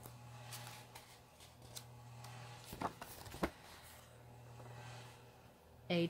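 Paper pages rustle and flip as a book's pages turn.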